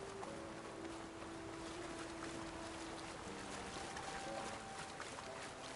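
Footsteps splash through a shallow stream.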